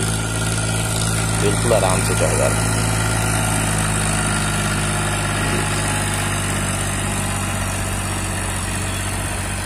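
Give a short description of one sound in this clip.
A tractor engine rumbles steadily as it hauls a loaded trailer uphill.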